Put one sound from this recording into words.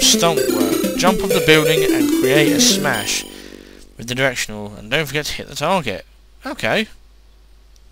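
Bright beeping chiptune music plays, then stops.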